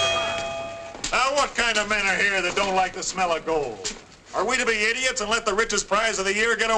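A man speaks loudly and firmly to a crowd.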